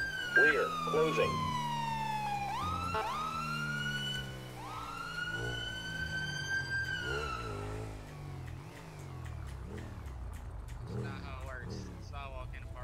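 A motorcycle engine revs and climbs through the gears, then slows and idles.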